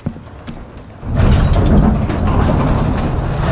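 A heavy sliding door rumbles open loudly.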